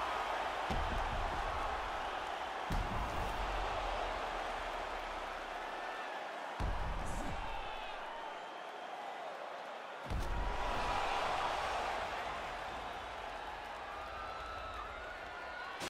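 A crowd roars and cheers steadily.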